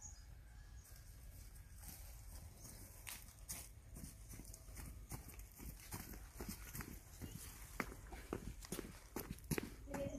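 Footsteps tread on grass and soil.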